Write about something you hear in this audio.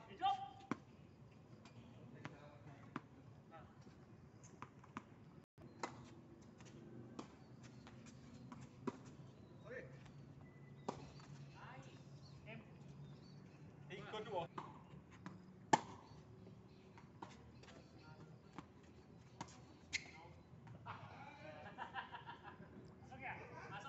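Tennis rackets strike a ball with sharp pops, outdoors.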